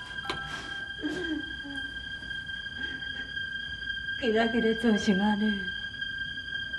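A woman sobs and speaks tearfully.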